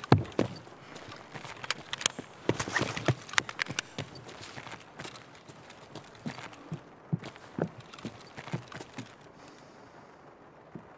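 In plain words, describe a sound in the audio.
A young man speaks quietly into a close microphone.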